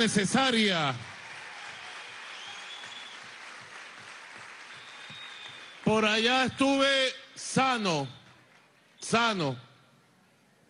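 A large crowd cheers and chants.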